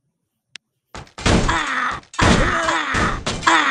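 Loud clashing battle sound effects play.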